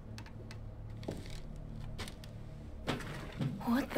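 A drawer slides open with a knock.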